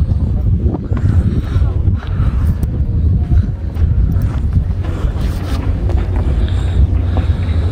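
Strong wind blows and buffets outdoors.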